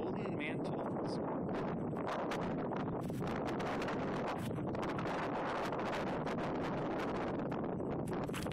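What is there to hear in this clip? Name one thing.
Strong wind blows loudly outdoors, buffeting the microphone.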